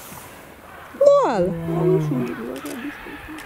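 A lioness growls close by.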